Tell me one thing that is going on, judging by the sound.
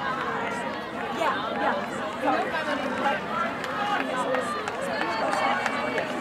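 A crowd of young people chatters outdoors nearby.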